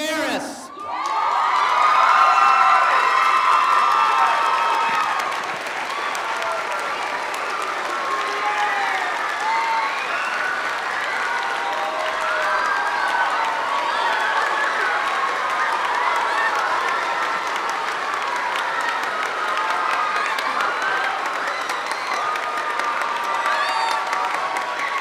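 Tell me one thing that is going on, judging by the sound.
Many people clap their hands.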